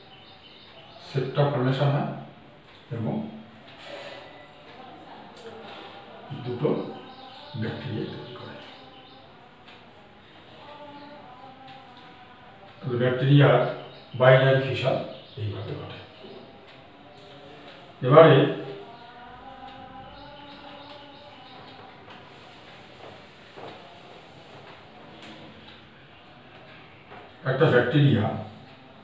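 A man lectures calmly and clearly, close by.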